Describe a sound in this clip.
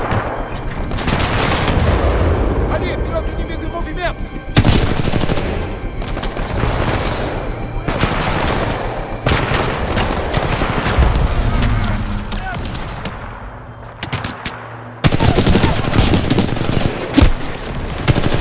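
Rapid gunfire bursts loudly and close.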